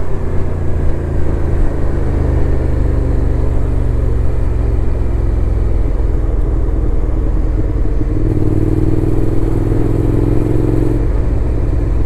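A motorcycle engine hums steadily up close, shifting pitch as the rider changes gear.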